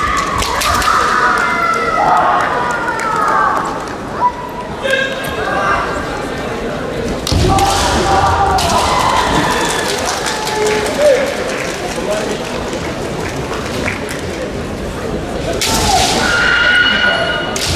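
Young women kendo fencers shout piercing cries that echo through a large hall.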